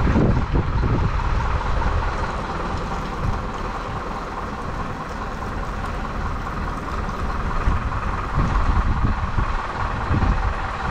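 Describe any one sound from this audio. Wind rumbles and gusts outdoors.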